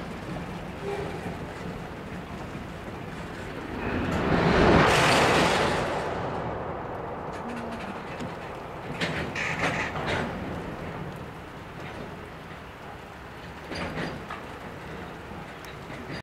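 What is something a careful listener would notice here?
A freight train rumbles slowly along the track with wheels clattering.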